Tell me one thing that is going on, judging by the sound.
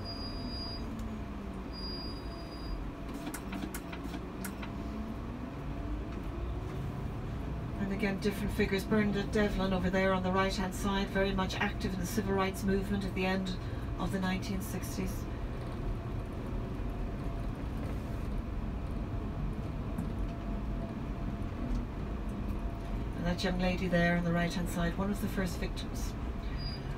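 A bus engine hums and drones as the bus drives along.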